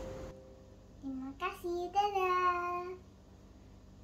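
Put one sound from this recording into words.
A young girl speaks brightly, close by.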